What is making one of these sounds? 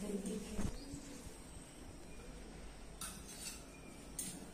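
Small metal dishes clink as they are handled.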